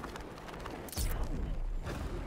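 A heavy thud lands on the ground.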